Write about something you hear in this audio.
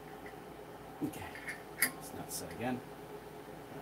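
A metal fitting clicks and clanks.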